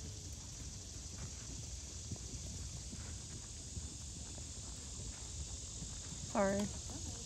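A horse trots with dull hoofbeats on soft sand.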